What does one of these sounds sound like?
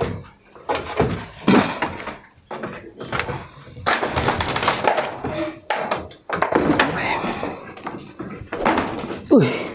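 Wooden boards knock and creak as a man climbs over them.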